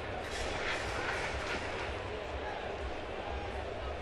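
A crowd murmurs and cheers outdoors.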